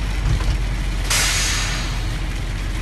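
Air brakes hiss sharply as a bus stops.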